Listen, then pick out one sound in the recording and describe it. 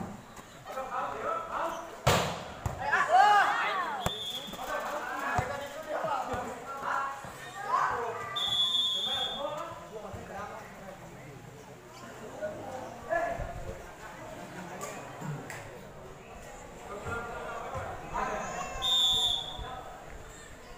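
Young men shout and call out during play.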